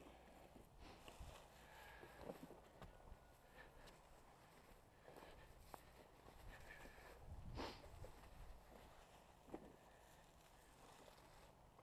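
Footsteps crunch through dry grass and litter.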